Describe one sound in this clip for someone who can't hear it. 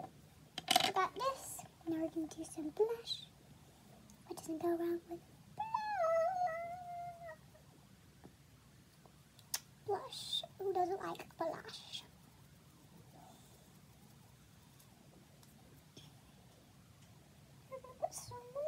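A young girl talks close by in a lively voice.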